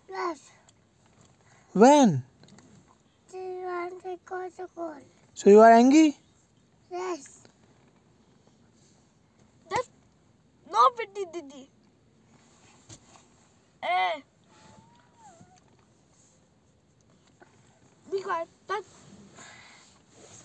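A small boy speaks in short bursts close by.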